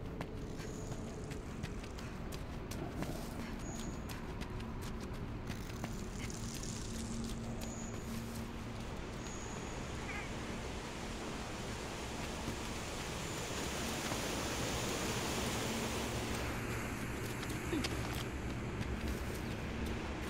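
Footsteps crunch quickly over rocky ground.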